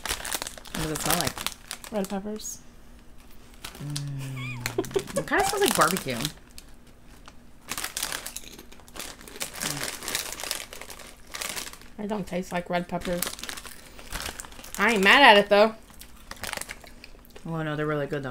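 A snack bag crinkles.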